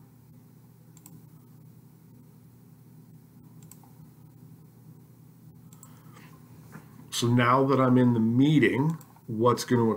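A mouse clicks a few times.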